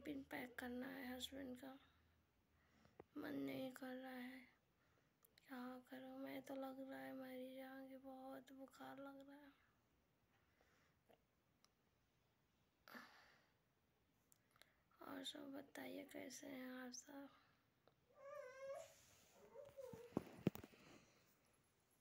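A woman speaks in a drawn-out, mournful voice close to the microphone.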